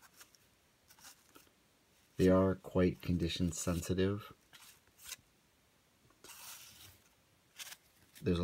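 Trading cards rustle and slide against each other in a hand.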